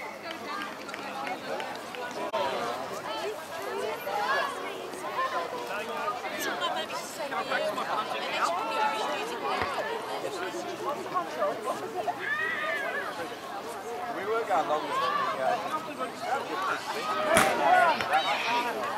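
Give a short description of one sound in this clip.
Young children shout and call out to each other outdoors across an open field.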